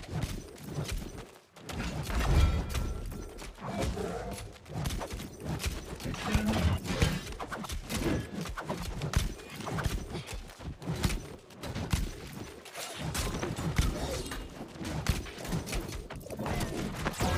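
Weapons clash and strike in a fast fight.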